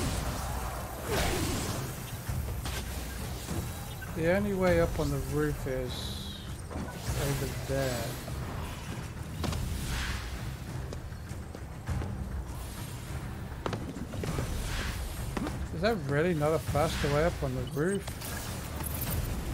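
Magical energy blasts fire with crackling whooshes.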